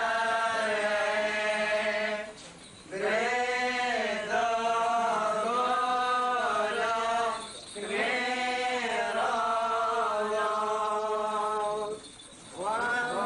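A group of men chant together in long, drawn-out phrases, pausing briefly between them.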